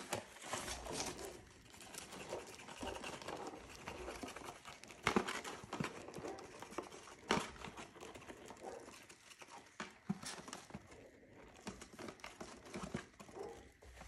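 A cardboard box crinkles and rustles close up.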